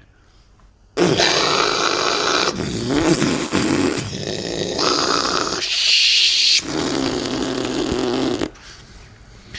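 A blowtorch roars with a steady hissing flame.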